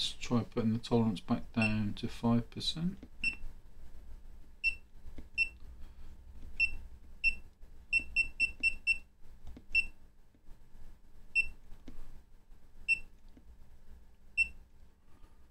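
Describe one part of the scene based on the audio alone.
An electronic meter gives short, high beeps.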